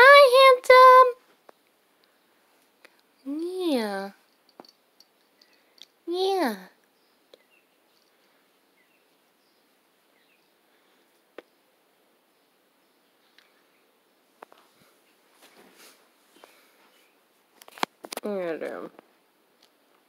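A cat meows loudly close by, several times.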